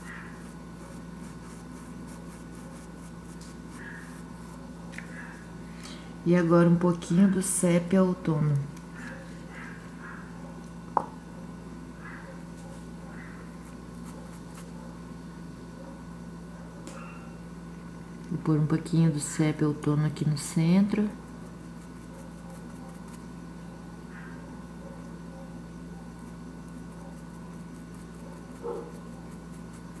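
A brush strokes softly across canvas.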